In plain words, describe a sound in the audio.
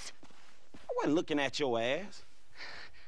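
A woman speaks breathlessly.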